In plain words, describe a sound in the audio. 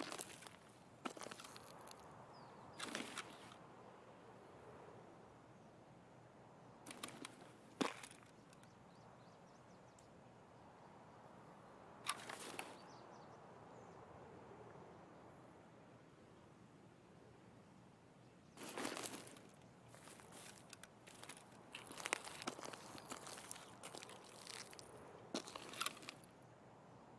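Gear rattles as a rifle is raised and lowered.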